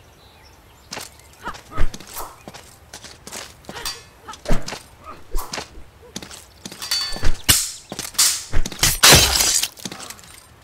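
Swords clash and ring with sharp metallic strikes.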